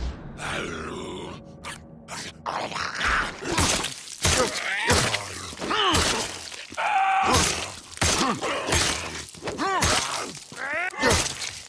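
A melee weapon strikes with heavy, wet thuds.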